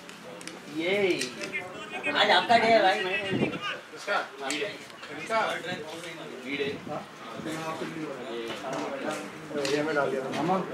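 Men call out and talk to each other outdoors at a distance.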